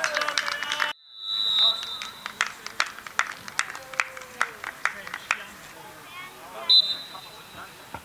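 A referee's whistle blows sharply outdoors.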